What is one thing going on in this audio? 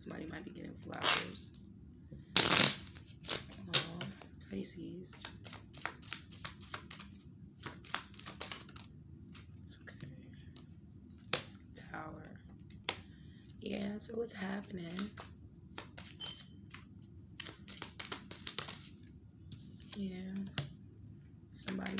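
Cards riffle and snap as a deck is shuffled.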